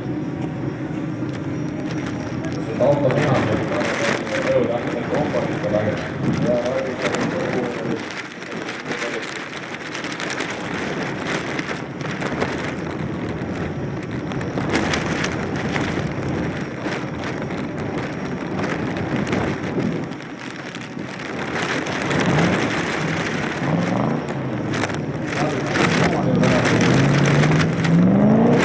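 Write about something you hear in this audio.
Tyres screech.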